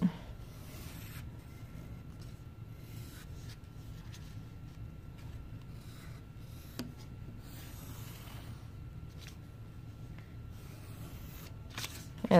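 A pencil scratches softly along the edge of cardboard.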